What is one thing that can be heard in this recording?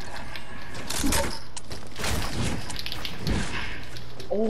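Building pieces snap into place with loud knocks.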